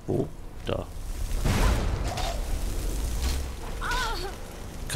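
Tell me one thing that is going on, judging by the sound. A fire spell crackles and roars.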